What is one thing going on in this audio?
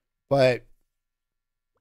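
A middle-aged man speaks briefly into a close microphone.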